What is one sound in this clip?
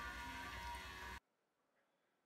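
Water squelches and drips as a hand squeezes wet shreds.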